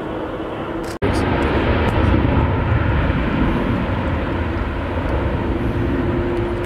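A jet engine roars as an airliner speeds down a runway.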